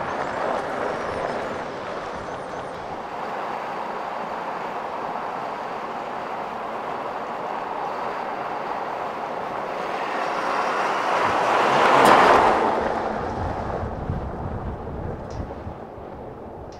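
Tyres crunch on a gravel road.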